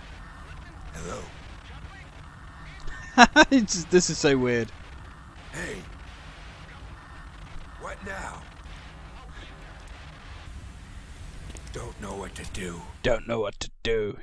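A man speaks urgently into a handheld radio.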